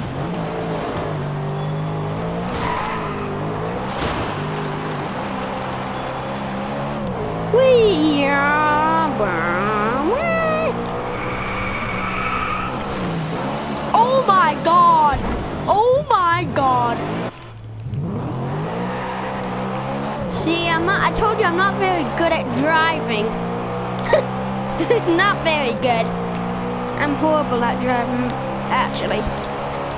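A car engine drones and revs up and down.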